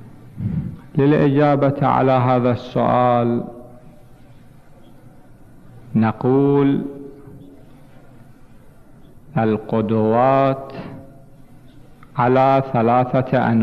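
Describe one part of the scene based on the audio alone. A man speaks slowly and solemnly into a microphone, heard through a loudspeaker in an echoing hall, with long pauses.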